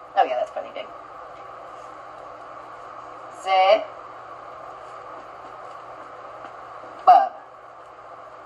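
A woman speaks a few short words, heard through a loudspeaker.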